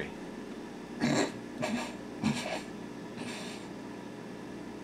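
A young man laughs into his hand.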